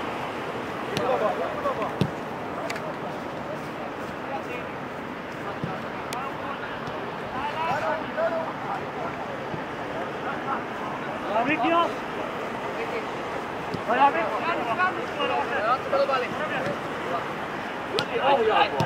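Young men shout to each other from a distance across an open field.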